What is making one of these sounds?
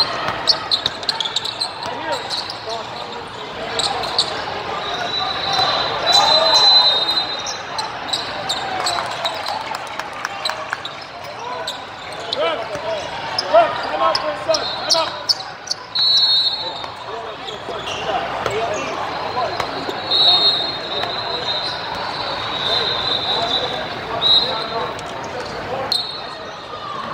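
A basketball bounces on a hard court in a large echoing hall.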